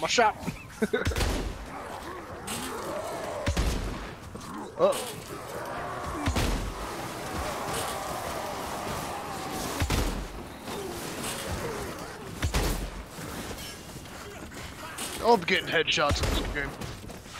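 A heavy gun fires loud, booming shots now and then.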